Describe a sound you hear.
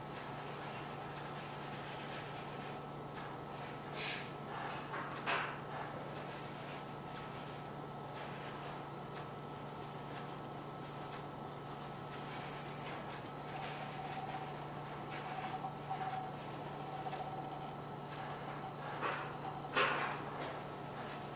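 A man plays a piano softly.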